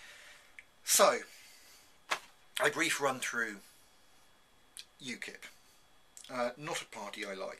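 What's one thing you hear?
A man speaks calmly and close to the microphone, in short phrases.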